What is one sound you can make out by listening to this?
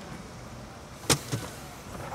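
A car door thumps shut.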